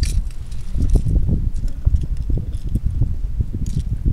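Metal pliers click against a fishing hook.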